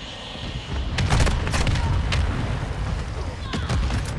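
A mortar shell explodes with a deep boom.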